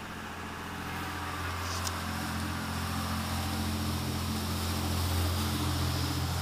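Water churns in the boat's wake.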